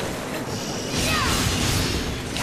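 A blast bursts loudly.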